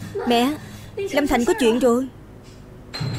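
A middle-aged woman answers in an agitated voice nearby.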